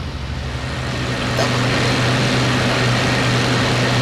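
An aircraft engine roars louder as another plane flies close by.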